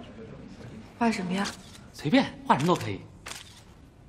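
A young woman speaks clearly and expressively, close by.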